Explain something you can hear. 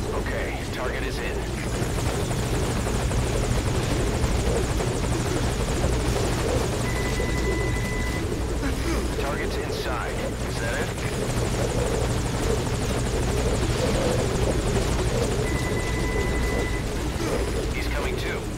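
A helicopter engine and rotor rumble nearby.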